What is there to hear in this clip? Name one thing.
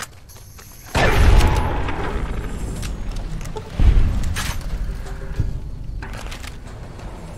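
A shotgun fires twice, loud booms echoing and rolling away.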